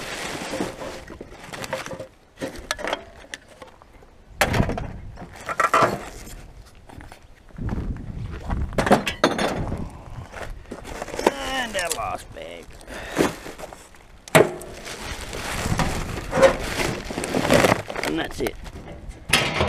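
A plastic bin lid bangs open and shut.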